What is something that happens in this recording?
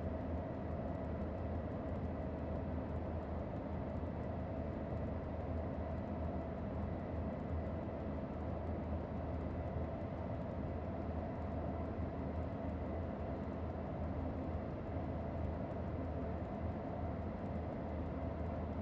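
An electric locomotive hums and rumbles steadily as it runs along the track at speed.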